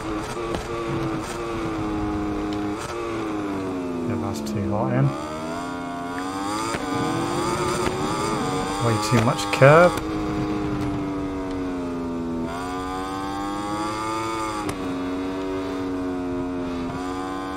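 A racing motorcycle engine whines loudly, rising and falling in pitch as it shifts gears.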